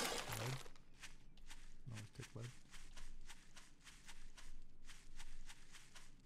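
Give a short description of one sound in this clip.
Footsteps rustle through grass at a steady pace.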